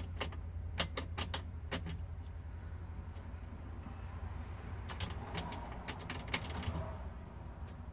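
Metal knobs on a dashboard click and rattle as a hand turns them.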